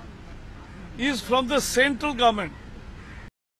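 A man speaks into microphones.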